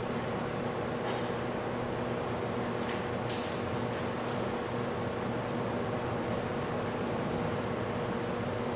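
Paper rustles softly in a man's hands.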